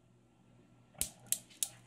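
Metal balls of a desk toy click against each other.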